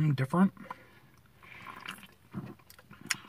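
A young man gulps a drink from a can.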